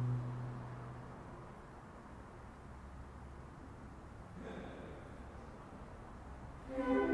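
A saxophone plays notes that echo through a large concrete space.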